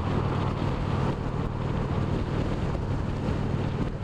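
A car passes close by on the highway.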